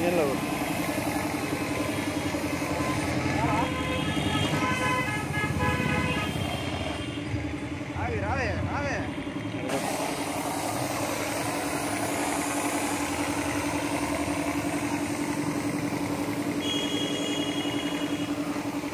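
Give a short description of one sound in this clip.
A foam sprayer hisses steadily as it sprays a motorcycle.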